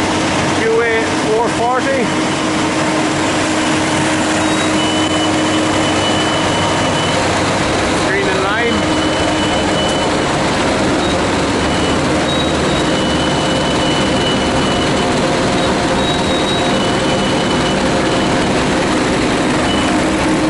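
A screening machine's engine drones loudly and steadily.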